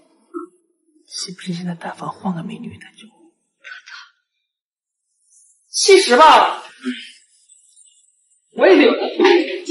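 A young person speaks with animation close by.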